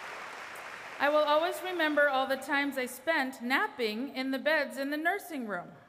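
A woman speaks clearly through a microphone over loudspeakers in a large echoing hall.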